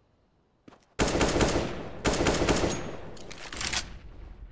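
An assault rifle fires in short bursts.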